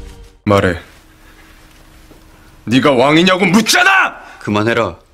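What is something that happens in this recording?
A young man speaks sharply and demandingly, close by.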